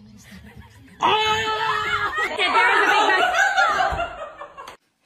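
A woman screams in fright.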